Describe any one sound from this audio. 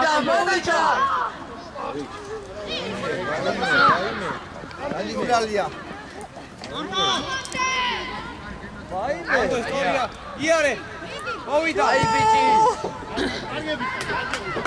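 Boys shout to each other across an open outdoor pitch.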